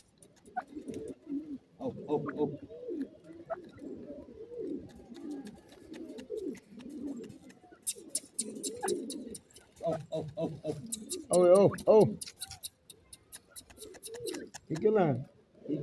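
A bird pecks softly at sandy ground.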